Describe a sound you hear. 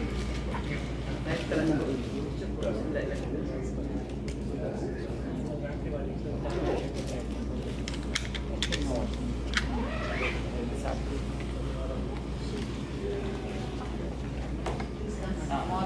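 Several men's voices murmur and chant nearby.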